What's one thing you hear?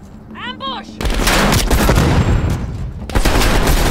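An automatic rifle fires loud, rapid bursts close by.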